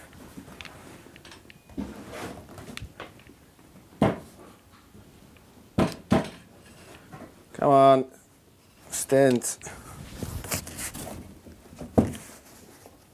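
A stiff cardboard figure knocks and scrapes as it is moved into place.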